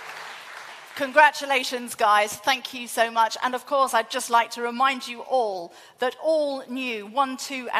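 A woman speaks into a microphone over loudspeakers in a large hall.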